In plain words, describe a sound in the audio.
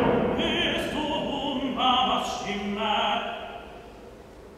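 A man blows a wind instrument.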